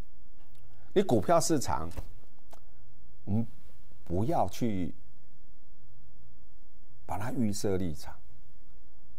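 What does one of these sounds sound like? A middle-aged man speaks with animation into a microphone, in short bursts.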